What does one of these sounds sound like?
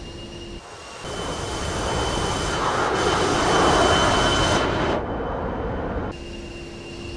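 A jet aircraft roars past.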